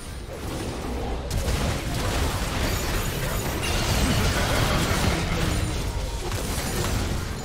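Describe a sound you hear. Magic blasts and weapon clashes crackle and boom in a fast fight.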